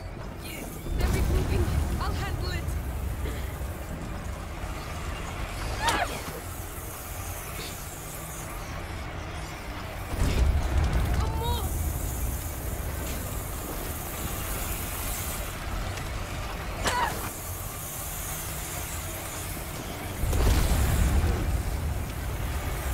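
A heavy wooden cart rumbles as it is pushed over rough ground.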